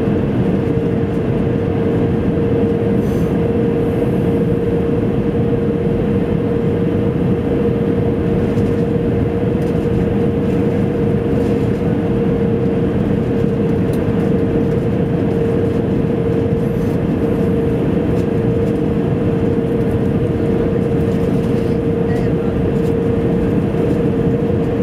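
A jet engine roars steadily with a constant hum, heard from inside a cabin.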